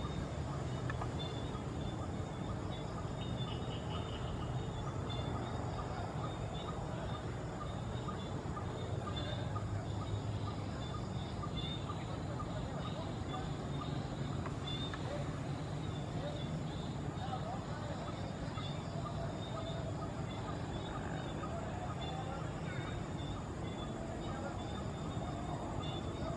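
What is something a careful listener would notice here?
A diesel locomotive rumbles low as it approaches from a distance.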